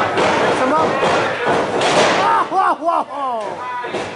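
Wrestlers' bodies thud onto the ring mat.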